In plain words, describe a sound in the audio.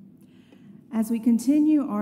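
A middle-aged woman sings loudly through a microphone.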